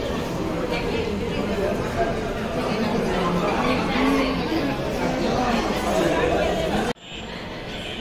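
A crowd of women chatters in a large echoing hall.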